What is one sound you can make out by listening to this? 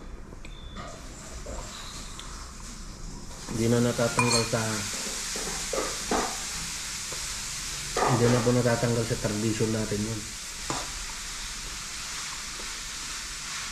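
A spoon scrapes against a bowl.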